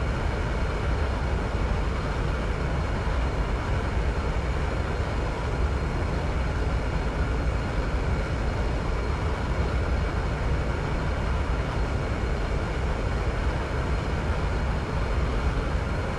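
Wheels rumble over a runway.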